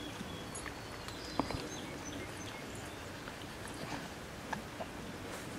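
A small dog sniffs close by.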